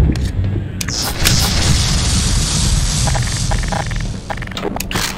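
Electricity crackles and zaps.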